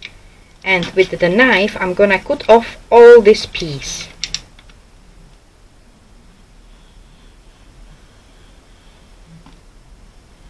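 A craft knife scores paper along a ruler.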